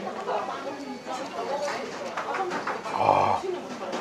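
A young man slurps noodles loudly.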